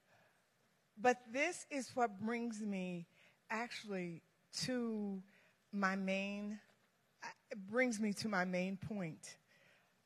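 A woman speaks into a microphone over loudspeakers in a large echoing hall.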